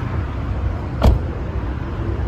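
A sedan's door shuts with a thud.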